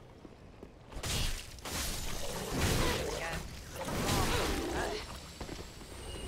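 A blade slashes and clangs in combat.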